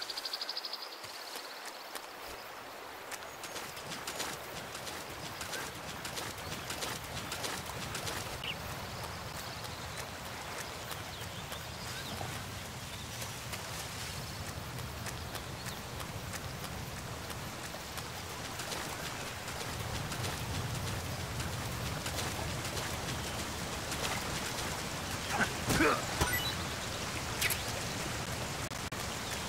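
Footsteps crunch and rustle through damp undergrowth.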